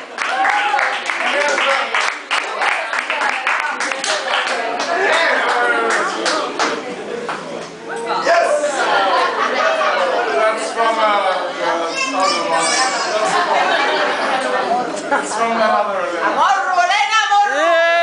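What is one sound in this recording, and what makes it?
A crowd of young men and women sings and shouts together with animation.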